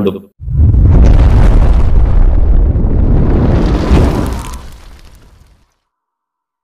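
A fireball roars and whooshes past.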